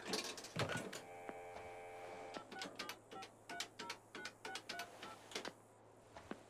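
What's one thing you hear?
Telephone keypad buttons beep as a number is dialled.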